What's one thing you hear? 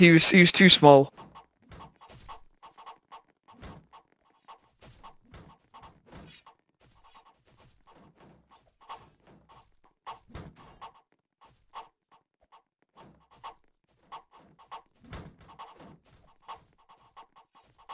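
Footsteps swish through tall grass at a steady walking pace.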